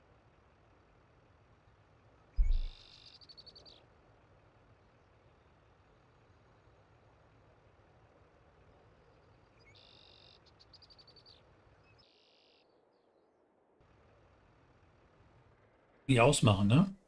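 A truck engine idles quietly.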